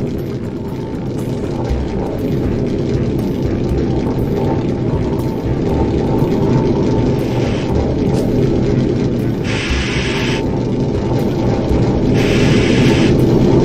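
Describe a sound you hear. A small figure slides and whooshes down a long tube.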